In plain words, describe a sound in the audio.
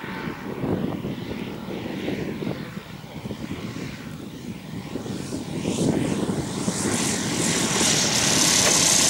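A small model airplane engine drones overhead and grows louder as it comes in to land.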